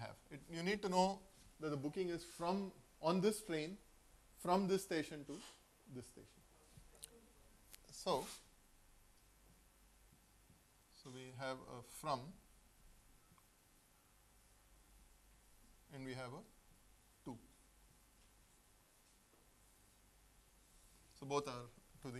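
A man speaks calmly through a clip-on microphone, pausing often.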